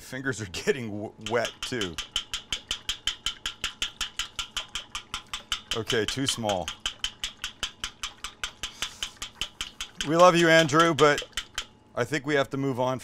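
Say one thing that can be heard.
A hand squelches and sloshes rapidly through a bowl of raw eggs.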